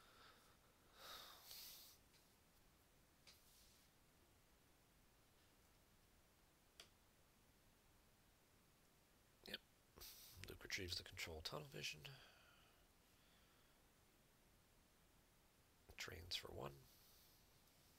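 A young man speaks briefly into a close microphone, in short bursts with long pauses.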